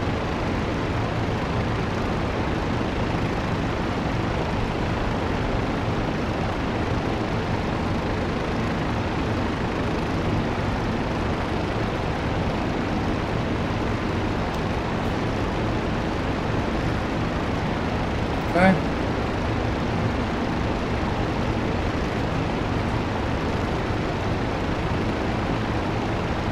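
A propeller plane's engine drones steadily up close.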